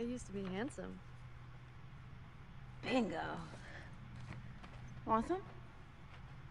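A young woman speaks casually.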